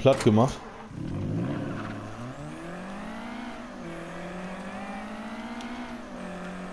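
A car engine starts and revs, then hums steadily while the car drives off.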